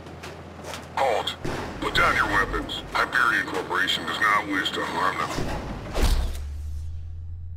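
A man shouts commands in a gruff voice.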